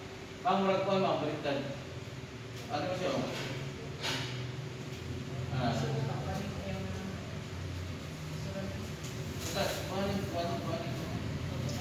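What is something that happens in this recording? Two adults talk briefly to each other nearby.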